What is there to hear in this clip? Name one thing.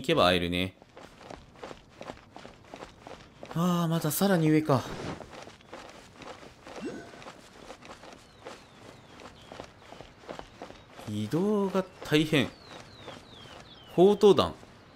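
Footsteps patter quickly on stone steps and grass.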